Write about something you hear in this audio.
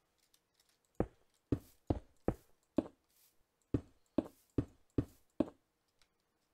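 Stone blocks are placed in a video game with short, dull knocks.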